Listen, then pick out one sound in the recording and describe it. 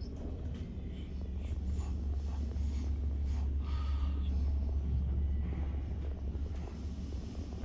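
An elevator car hums with a low, steady rumble as it travels.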